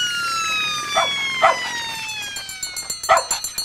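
A dog barks a few times.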